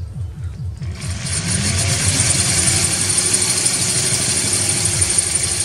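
A drill bit grinds into glass with a rising hiss.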